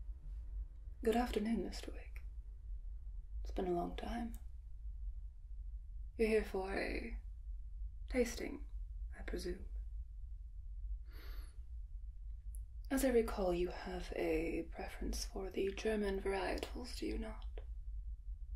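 A young woman speaks calmly and slowly, close by.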